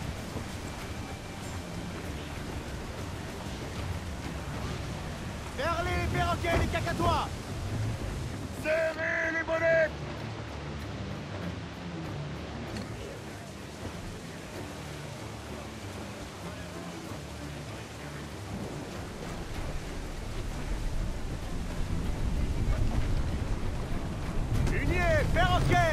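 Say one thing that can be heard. Strong wind blows through rigging and sails.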